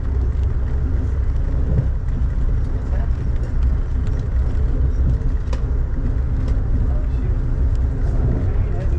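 Rain patters steadily against a window with soft taps.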